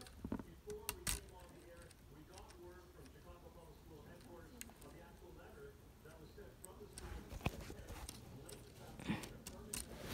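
Small plastic toy pieces click and rattle as they are handled.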